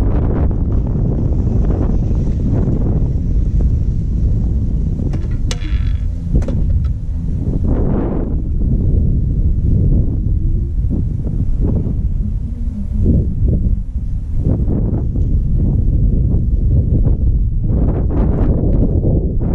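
Wind rumbles loudly and gusts past outdoors.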